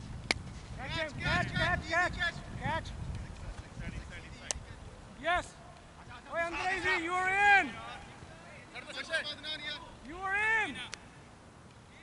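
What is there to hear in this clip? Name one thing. Men call out and shout to each other across an open field.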